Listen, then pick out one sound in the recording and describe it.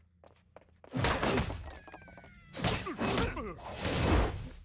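Game characters clash with loud hits and impacts.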